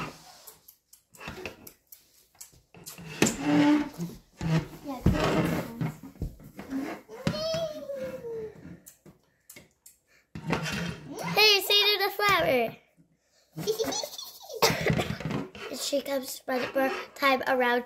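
Plastic toy hooves tap on a wooden floor.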